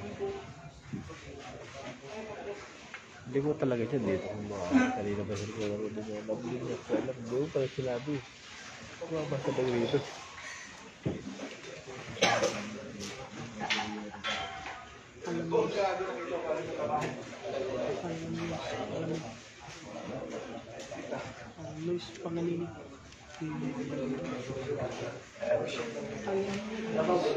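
Several men chat casually nearby.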